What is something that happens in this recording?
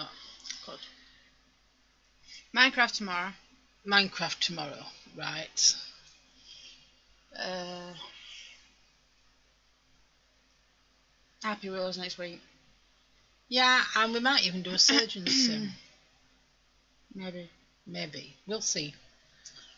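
An older woman talks calmly, close to a microphone.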